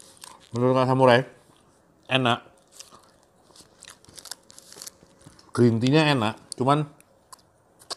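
Paper wrapping crinkles as bread is pulled apart by hand.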